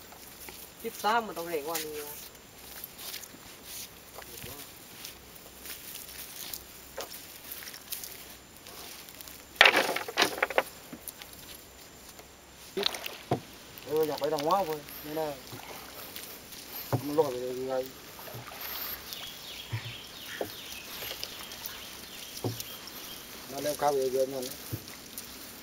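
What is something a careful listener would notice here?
A man speaks in short calm phrases nearby.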